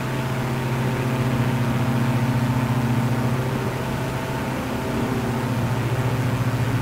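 A propeller plane's engine drones steadily as it rolls down a runway.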